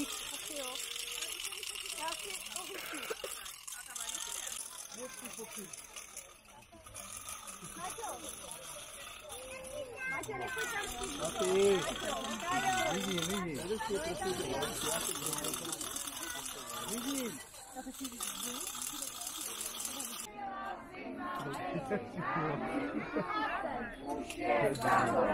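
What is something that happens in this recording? A crowd of children and adults chatter and shout excitedly outdoors.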